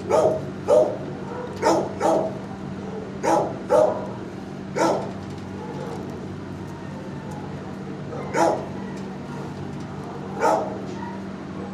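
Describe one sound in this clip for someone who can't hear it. A dog sniffs and snuffles loudly, close by.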